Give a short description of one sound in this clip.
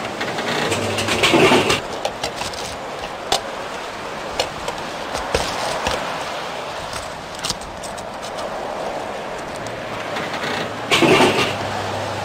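Traffic hums steadily along a nearby street.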